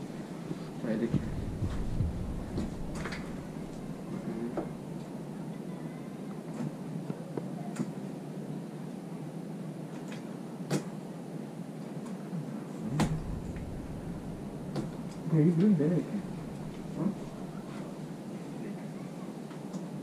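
Plastic cart wheels rattle and roll across a floor.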